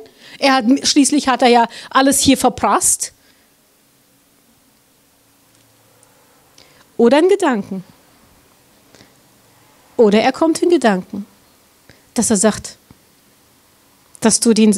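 A middle-aged woman speaks with animation into a microphone, pausing between phrases.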